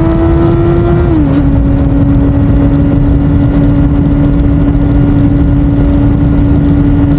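A motorcycle engine hums steadily at speed, dropping slightly in pitch as it shifts.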